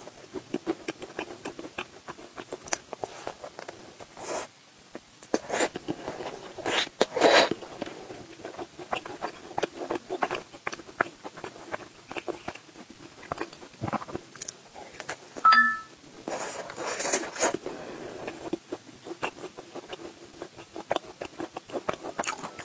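A young woman chews food wetly, close to a microphone.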